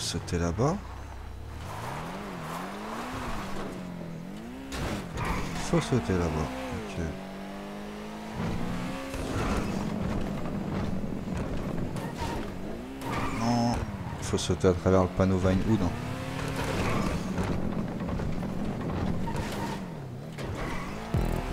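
A car engine revs up and down as the car races.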